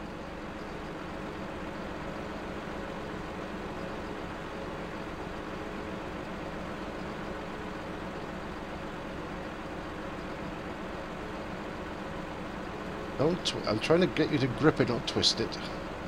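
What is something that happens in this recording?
A machine engine hums steadily.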